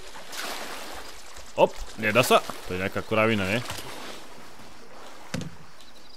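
Water laps and splashes gently against a boat's hull.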